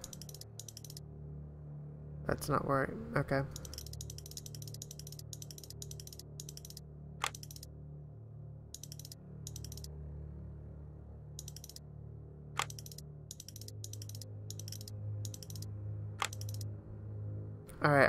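A dial clicks sharply as it turns, one notch at a time.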